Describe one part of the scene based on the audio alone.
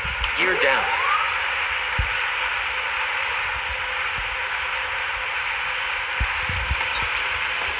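Landing gear lowers with a mechanical whir and clunk.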